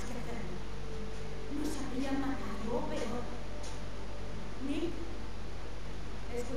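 A young woman speaks firmly and close by.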